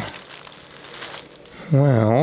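A plastic bag crinkles and rustles close by.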